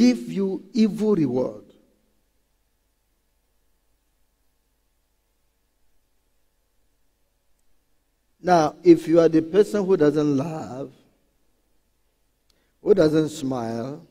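A man preaches with emphasis through a microphone, pausing between phrases.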